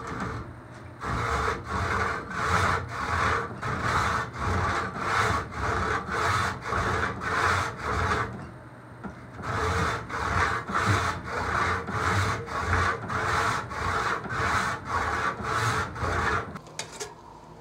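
A hand saw cuts wood with quick, rhythmic strokes.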